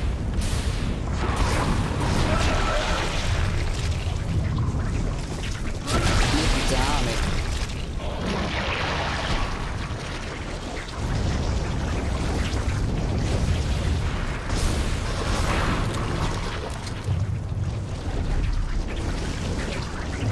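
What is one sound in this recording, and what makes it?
A man talks into a close microphone.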